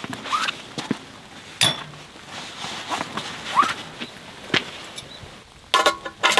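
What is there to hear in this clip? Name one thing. Metal poles clink and clatter as a camp cot is set up.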